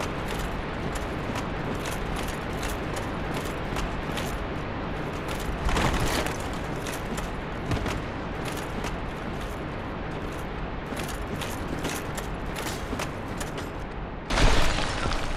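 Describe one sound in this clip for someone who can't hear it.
Armored footsteps run quickly over stone.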